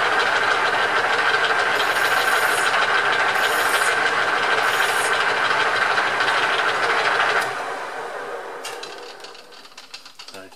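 A lathe motor hums loudly, then winds down and stops.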